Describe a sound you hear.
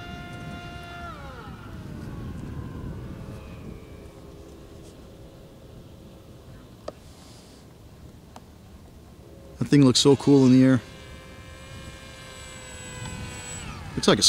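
A jet plane roars overhead, its engine whining as it flies past.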